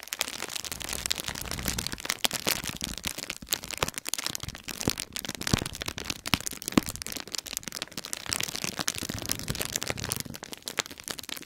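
Fingers press and crinkle bubble wrap up close, with rapid little pops and crackles.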